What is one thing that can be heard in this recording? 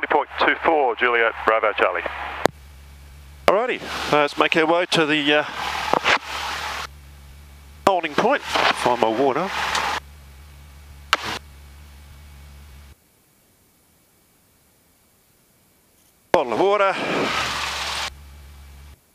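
A man speaks calmly over a crackly headset intercom.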